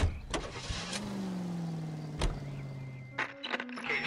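A car engine starts and idles with a low hum.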